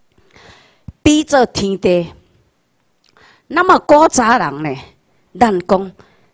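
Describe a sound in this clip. A woman speaks calmly through a microphone and loudspeakers in a large room.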